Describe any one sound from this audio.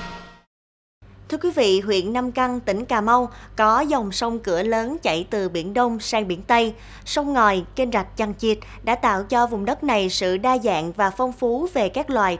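A young woman speaks clearly and steadily into a microphone, as if reading the news.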